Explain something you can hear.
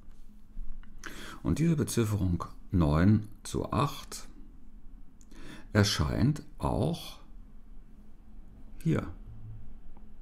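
An older man speaks calmly and close to a microphone.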